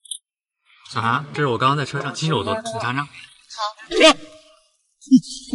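A young man talks casually at close range.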